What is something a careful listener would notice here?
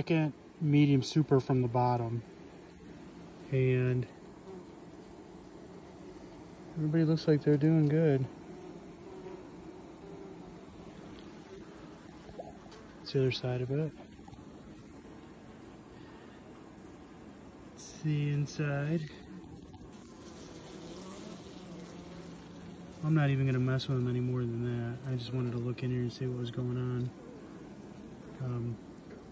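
Many bees buzz steadily close by.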